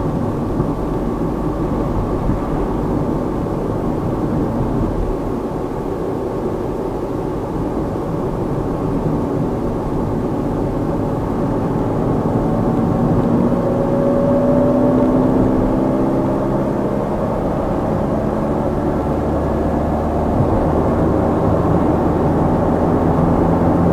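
A car engine hums steadily from inside the car, rising a little in pitch midway.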